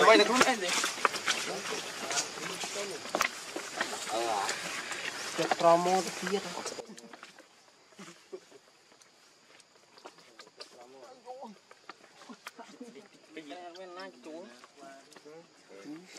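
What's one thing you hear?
A baby monkey squeals and whimpers close by.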